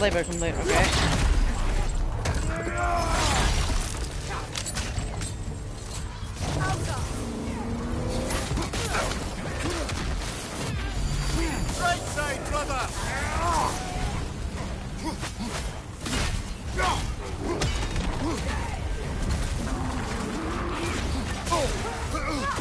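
Heavy blows land with sharp thuds and crunches.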